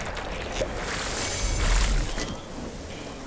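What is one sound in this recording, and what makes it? A game water splash gushes loudly.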